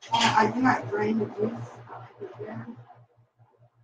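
A woman speaks nearby with animation.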